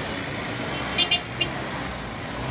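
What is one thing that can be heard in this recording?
A truck horn beeps twice.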